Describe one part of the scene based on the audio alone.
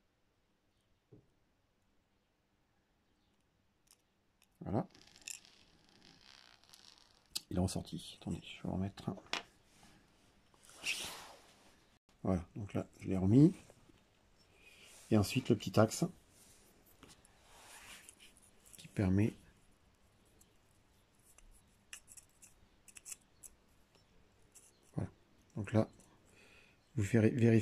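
Small plastic parts click and scrape as hands fit them together.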